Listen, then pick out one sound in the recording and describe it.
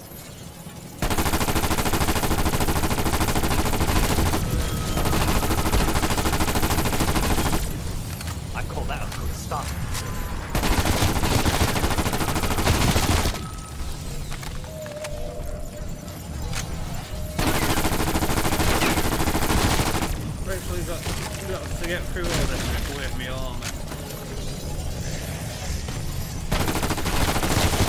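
Rapid automatic gunfire rattles loudly in long bursts.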